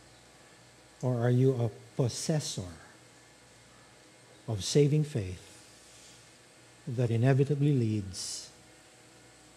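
A middle-aged man speaks calmly through a microphone, with pauses between phrases.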